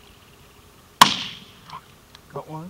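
A shotgun fires once in the distance, outdoors in open country.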